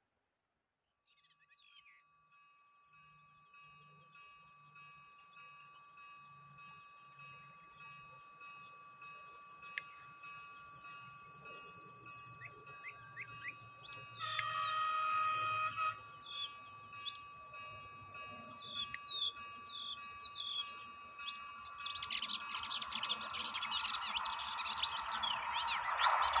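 A train approaches from far off, its steady hum growing louder.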